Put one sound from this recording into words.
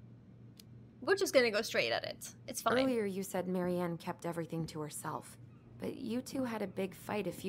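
A young woman speaks calmly, close to a microphone.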